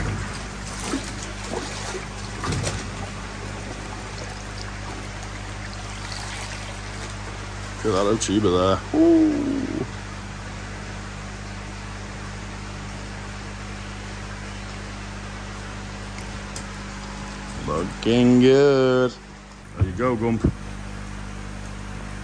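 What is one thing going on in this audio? Water trickles and bubbles steadily.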